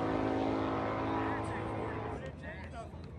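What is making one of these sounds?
A car engine roars in the distance.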